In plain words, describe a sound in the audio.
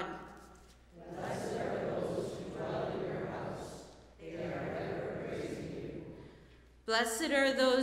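A congregation speaks together in unison, echoing in a large hall.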